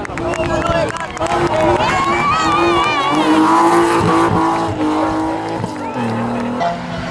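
A race car engine roars loudly and revs up and down as it speeds past.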